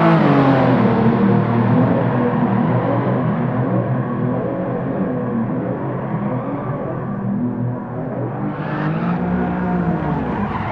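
A sedan's engine revs high as the car drifts.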